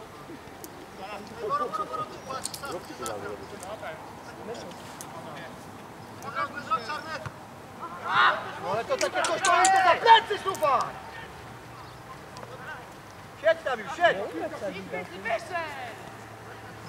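Men shout to each other across an open field in the distance.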